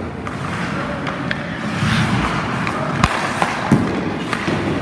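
A hockey stick slaps a puck with a sharp crack that echoes.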